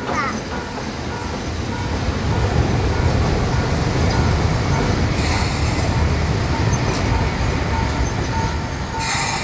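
An electric train rumbles closer and pulls in, growing louder.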